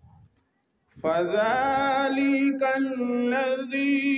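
A man chants a recitation in a long, melodic voice through a microphone and loudspeaker, outdoors.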